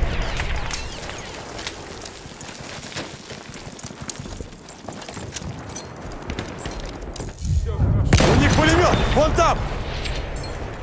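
Explosions boom with a deep rumble nearby.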